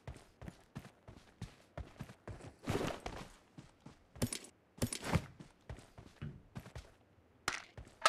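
Footsteps patter quickly over grass and dirt.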